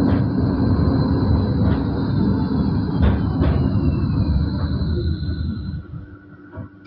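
Tram wheels squeal faintly on the track.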